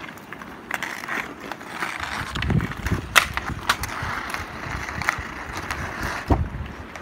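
A hockey stick knocks a puck on the ice.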